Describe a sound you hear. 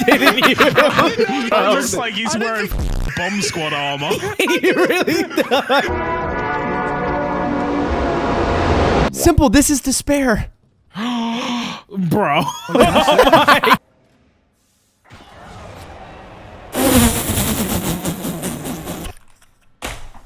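A young man talks with animation into a microphone, laughing at times.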